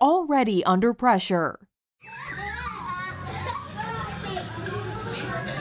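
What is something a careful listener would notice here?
Young children chatter and call out nearby outdoors.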